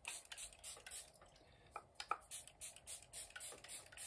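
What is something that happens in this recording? A spray bottle hisses in short bursts.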